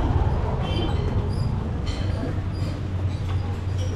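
A young woman talks quietly, close to the microphone.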